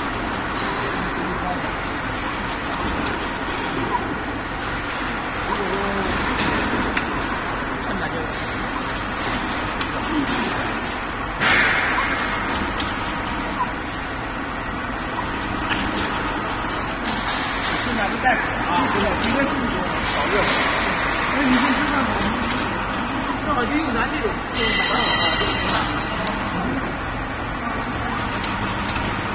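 A conveyor machine hums and rattles steadily.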